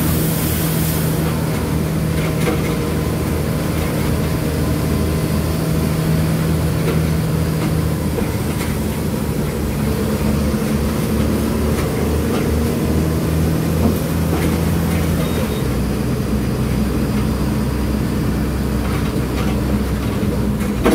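A bus engine hums and drones steadily from inside the cabin.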